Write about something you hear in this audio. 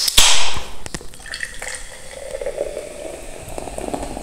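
Soda pours and fizzes into a glass jar.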